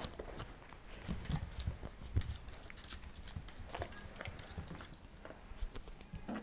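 A puppy's claws click and patter on a wooden floor.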